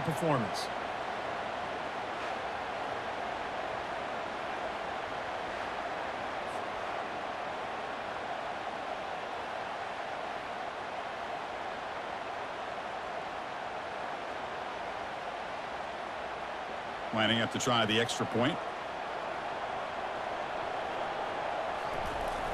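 A large crowd roars steadily in an open stadium.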